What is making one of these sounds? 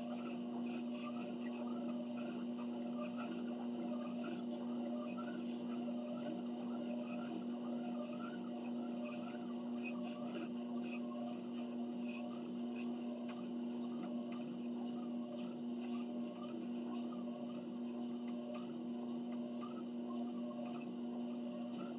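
Footsteps thud in a steady rhythm on a treadmill belt.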